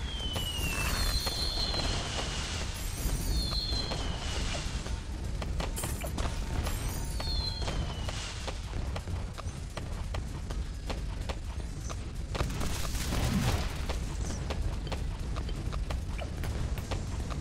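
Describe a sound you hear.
Cartoon explosions boom and pop over and over.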